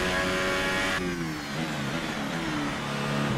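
A racing car engine slows and drops in pitch under braking.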